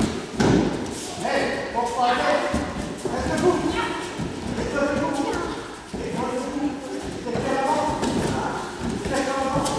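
Young people talk and call out in a large echoing hall.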